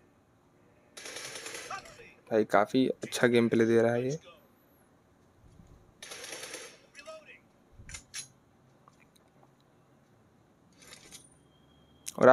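Game gunfire crackles from a phone's small speaker.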